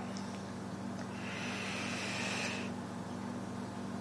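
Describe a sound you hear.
A man inhales slowly through a vape with a soft hiss.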